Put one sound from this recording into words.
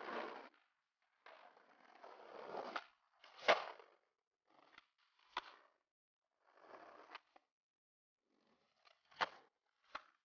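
A skateboard lands hard on concrete.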